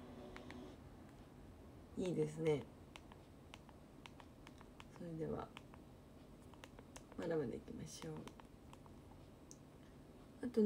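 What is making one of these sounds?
Buttons click on a remote control.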